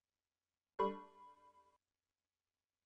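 A computer alert chime rings once and fades.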